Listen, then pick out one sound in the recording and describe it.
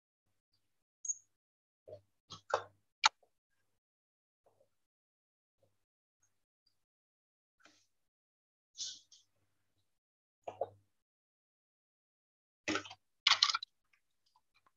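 A young woman speaks in short bursts over an online call.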